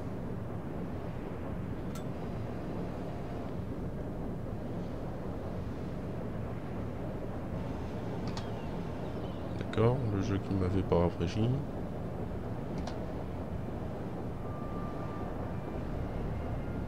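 Water laps gently against a ship's hull.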